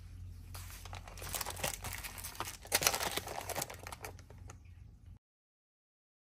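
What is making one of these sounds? Plastic sleeves crinkle and rustle in hands.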